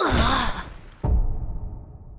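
A heavy blow lands with a booming thud.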